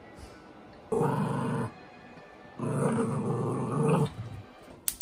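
A small dog growls while tugging at a toy.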